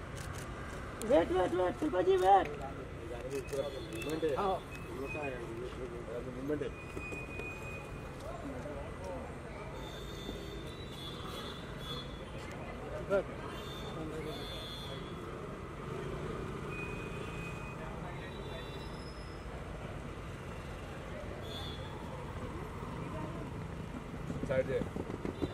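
Adult men talk and call out nearby.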